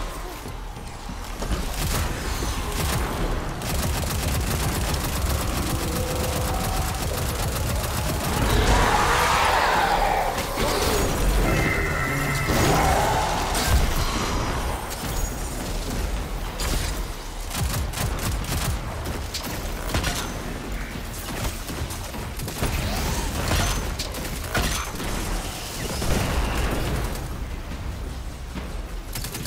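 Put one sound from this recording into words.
Video game guns fire in rapid bursts.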